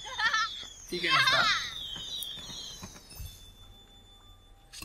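A soft puff of smoke bursts with a sparkling chime.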